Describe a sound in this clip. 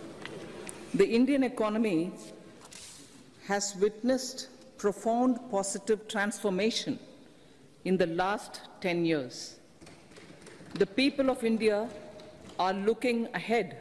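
An older woman speaks steadily and formally into a microphone.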